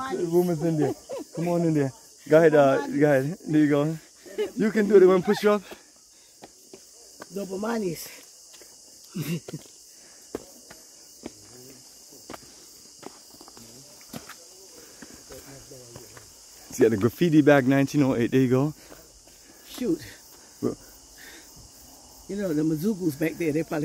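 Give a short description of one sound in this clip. A man talks cheerfully close by.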